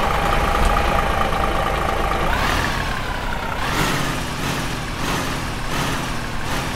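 A simulated diesel semi truck engine rumbles as it drives.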